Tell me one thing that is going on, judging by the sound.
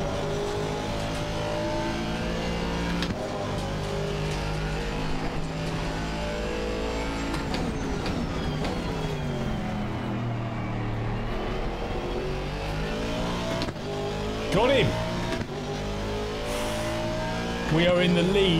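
A racing car engine roars and changes pitch as it shifts gears throughout.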